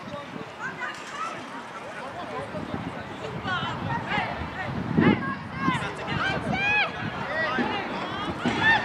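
Young players shout and call to each other outdoors on an open field.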